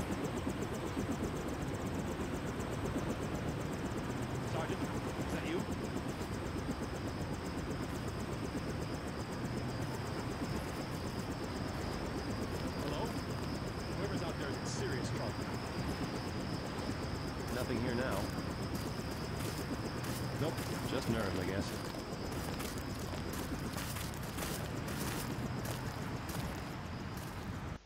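A helicopter's rotor thumps and whirs steadily overhead.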